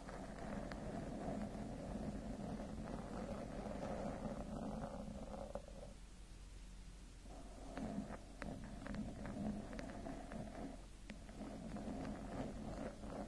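Fingernails scratch and rub close to a microphone's foam cover.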